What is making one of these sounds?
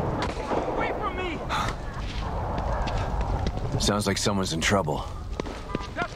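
Footsteps tap on wet pavement.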